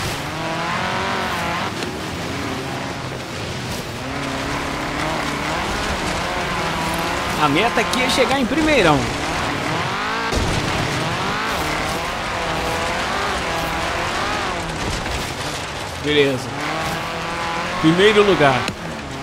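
A buggy engine roars and revs up and down.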